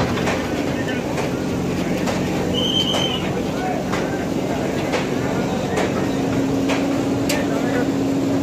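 Metal sheeting clangs and scrapes as a backhoe bucket tears at it.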